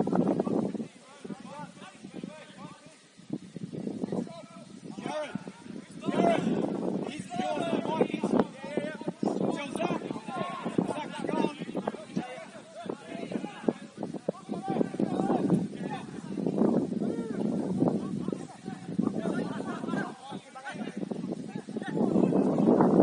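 Young men shout and call to each other outdoors at a distance.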